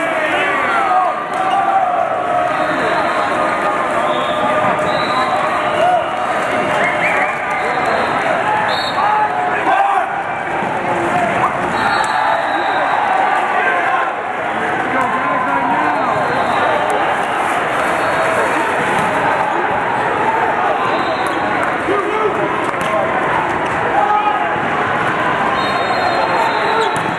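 A crowd of people chatters throughout a large echoing hall.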